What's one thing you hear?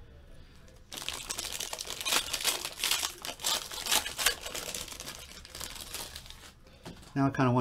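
Foil wrapping crinkles and rustles in hands.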